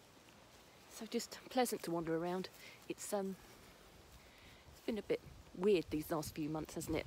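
A middle-aged woman talks close to the microphone with animation.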